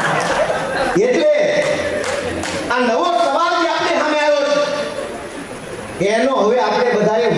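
A man speaks loudly and with animation through a microphone and loudspeakers.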